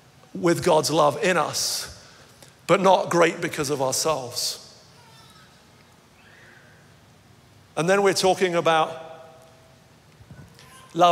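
A young man speaks with animation through a microphone, in pauses, in a large hall.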